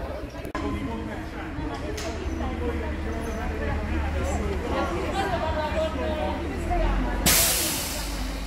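Several people talk at once nearby outdoors.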